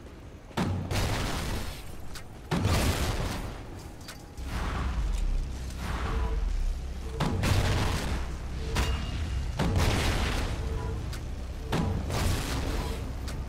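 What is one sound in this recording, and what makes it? A rifle fires single shots.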